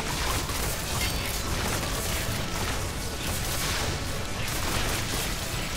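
Magic blasts crackle and burst in quick succession.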